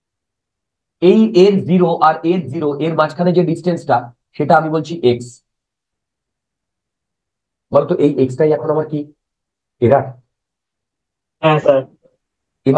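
A man explains calmly into a close microphone, in short bursts.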